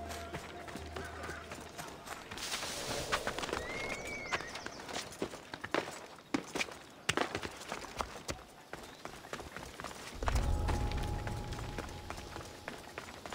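Footsteps run over hard ground.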